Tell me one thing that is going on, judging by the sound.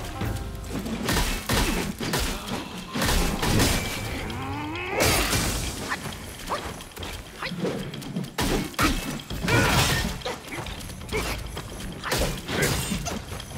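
Weapons clash and strike with sharp, heavy hits.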